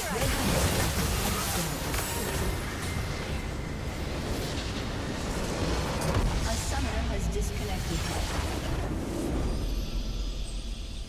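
Game battle effects crash and explode loudly.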